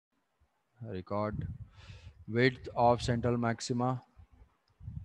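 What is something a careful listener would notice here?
A young man speaks calmly into a microphone, heard as in an online call.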